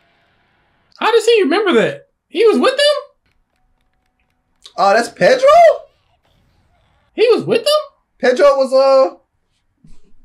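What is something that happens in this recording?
A young man speaks with animation, close by, in short bursts.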